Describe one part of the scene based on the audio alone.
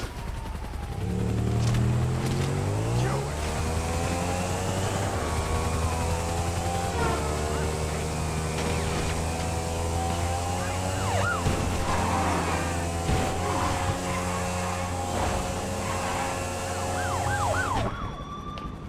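A motorcycle engine starts and revs, then roars steadily while riding.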